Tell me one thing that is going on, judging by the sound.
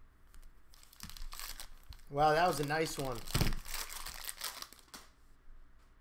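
A plastic wrapper crinkles as hands tear it open.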